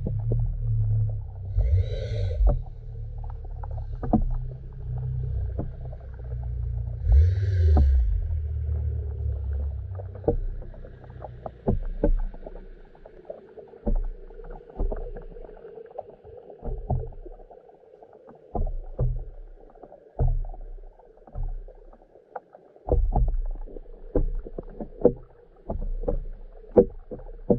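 Water rumbles and gurgles in a low, muffled way, heard from underwater, with soft clicks and knocks.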